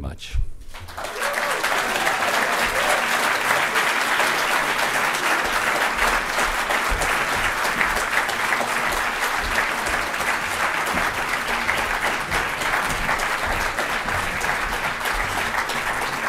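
A large audience applauds loudly and steadily.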